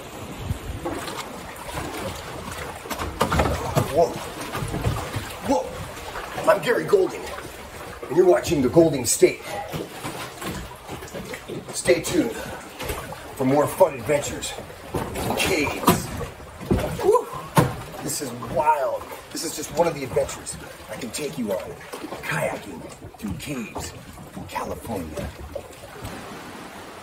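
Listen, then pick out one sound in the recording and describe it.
A man talks with animation close by, his voice echoing in a cave.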